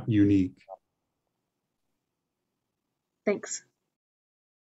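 A man speaks briefly over an online call.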